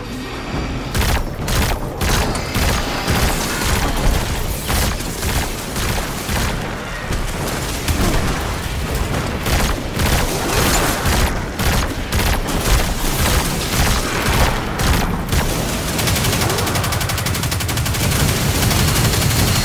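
Energy blasts zap and hiss.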